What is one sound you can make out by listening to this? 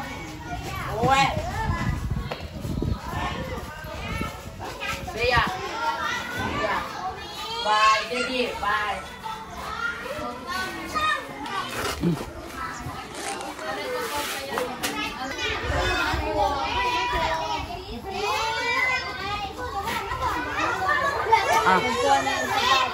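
Children talk and chatter nearby.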